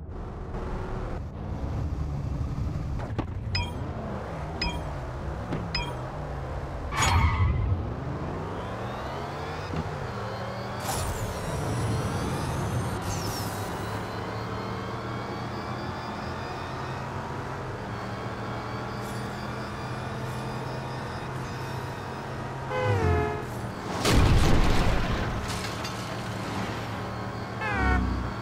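A car engine revs up and roars as the car races at high speed.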